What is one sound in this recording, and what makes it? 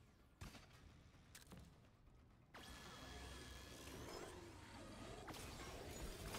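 A heavy gun fires several sharp shots.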